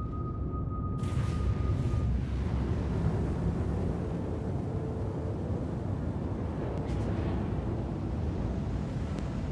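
Spacecraft thrusters roar loudly as the craft flies.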